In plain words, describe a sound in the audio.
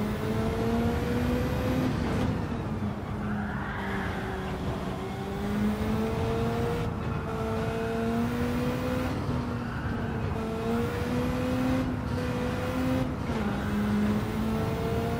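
A racing car engine drones loudly, its pitch climbing and then dropping sharply at each gear change.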